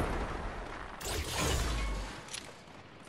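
A pickaxe clangs against a metal door.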